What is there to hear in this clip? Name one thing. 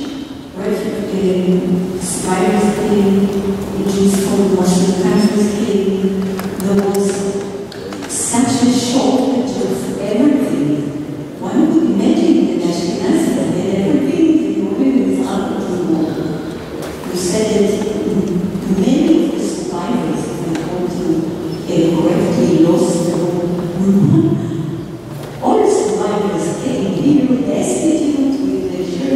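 A woman speaks calmly into a microphone, heard through loudspeakers in a large echoing hall.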